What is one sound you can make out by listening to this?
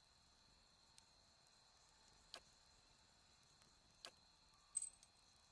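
Soft interface clicks sound as items are picked up and dropped.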